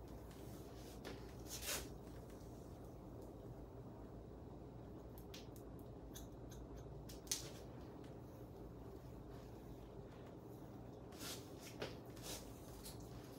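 Scissors snip through hair close by.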